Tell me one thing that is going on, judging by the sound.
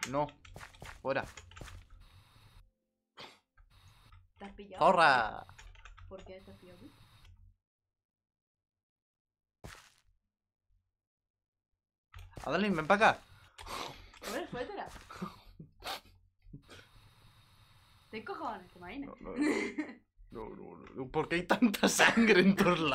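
A young man talks with animation through a close microphone.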